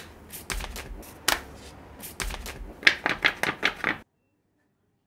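A paper sheet crinkles and rustles in hands.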